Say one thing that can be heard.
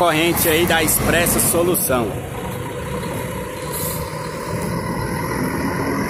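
A bus engine rumbles as the bus pulls away.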